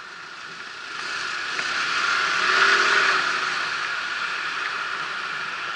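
Car traffic hums nearby.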